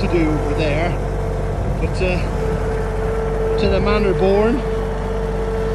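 A small tractor engine runs with a steady low rumble.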